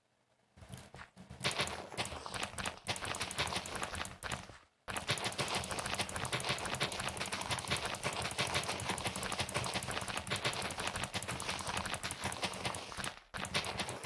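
Dirt crunches in quick, repeated bursts as it is dug away.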